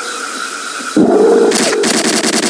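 A dinosaur growls and roars close by.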